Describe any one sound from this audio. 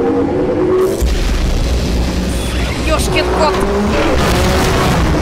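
Laser beams blast and crackle loudly.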